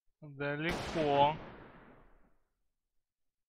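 A gun fires once and its blast echoes away.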